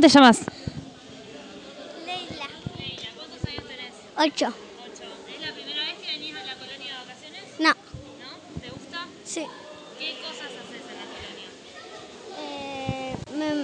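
A young girl speaks close to a microphone.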